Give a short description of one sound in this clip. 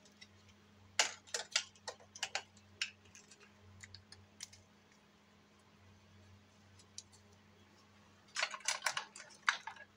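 Plastic parts of a toy click and clatter as hands take it apart.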